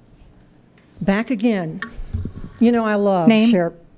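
A woman speaks calmly into a microphone, heard through loudspeakers in a large room.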